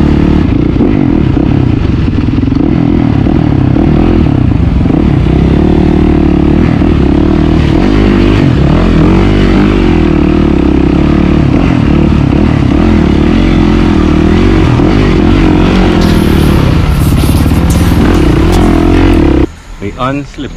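A motorcycle engine revs and roars loudly up close.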